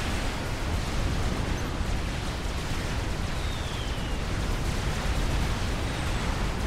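Explosions rumble and crackle without pause in a large battle.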